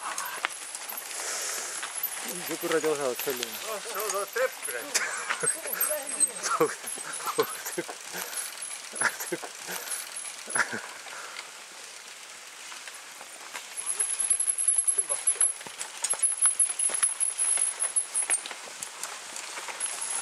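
Mountain bikes rattle and clatter over a bumpy dirt trail close by.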